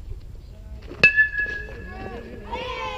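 A baseball bat strikes a ball with a sharp, ringing crack.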